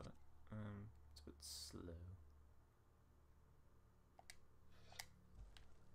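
Soft interface clicks sound a few times.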